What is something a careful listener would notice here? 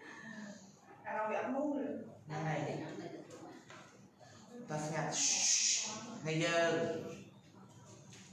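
A young woman speaks softly a little farther away.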